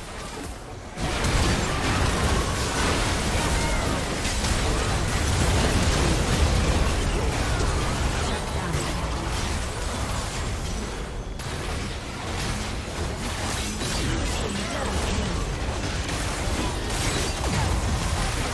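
Game spells and weapon hits clash in a dense, noisy battle.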